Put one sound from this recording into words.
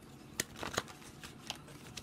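Paper cards rustle softly under a hand.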